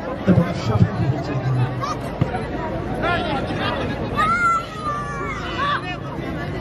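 A large outdoor crowd of spectators cheers and shouts.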